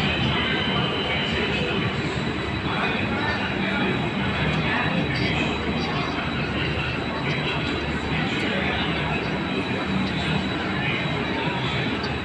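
A passenger train rolls past close by with a steady rumble and clatter of wheels on rails.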